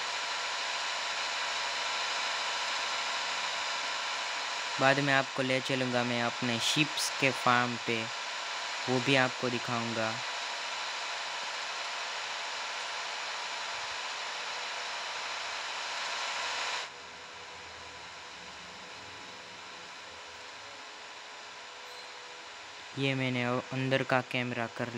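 A tractor engine hums steadily as the tractor drives along.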